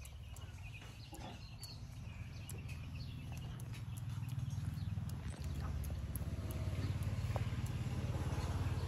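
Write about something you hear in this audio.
Fingers rustle softly through hair close by.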